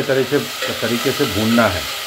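A metal spoon scrapes against a pot.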